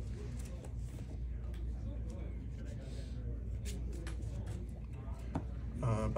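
Cards tap and slide on a cloth mat.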